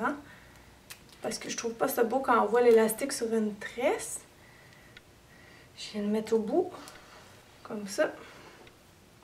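A young woman talks calmly and close to the microphone, in short bursts with pauses.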